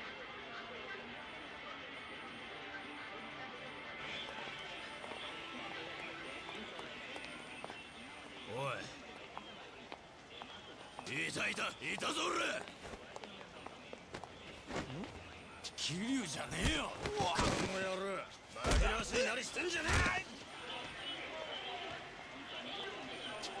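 A bustling street crowd murmurs steadily.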